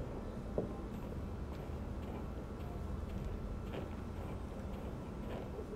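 Footsteps climb wooden stairs at a steady pace.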